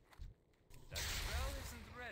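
A lightning spell crackles and strikes.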